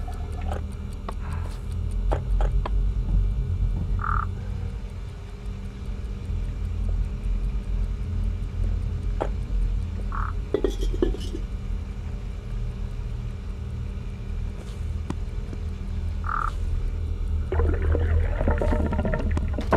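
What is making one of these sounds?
Plates and small objects knock and clatter as they are picked up and dropped.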